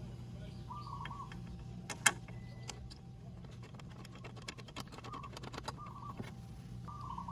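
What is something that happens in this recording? A bolt scrapes as it is threaded in by hand.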